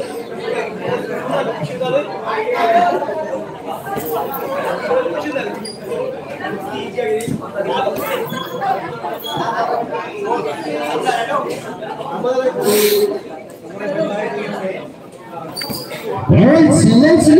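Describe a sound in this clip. Men talk at a distance in an echoing room.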